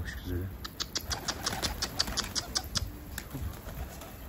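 A pigeon flaps its wings in flight.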